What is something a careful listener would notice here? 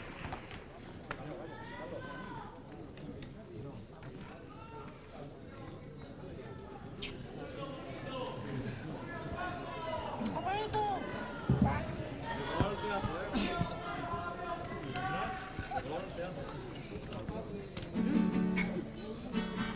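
A group of men sing together in chorus.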